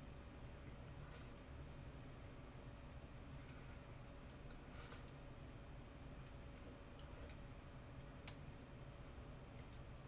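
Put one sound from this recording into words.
A young woman eats noodles close by, slurping softly.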